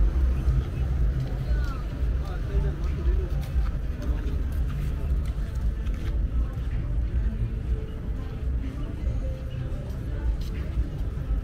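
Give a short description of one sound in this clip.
Distant people chat faintly in the background.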